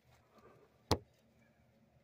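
A finger taps once, close up.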